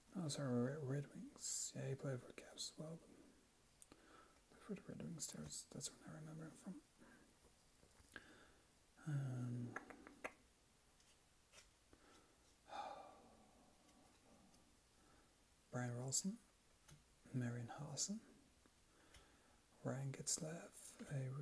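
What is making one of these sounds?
Trading cards rustle and slide against each other as they are shuffled by hand.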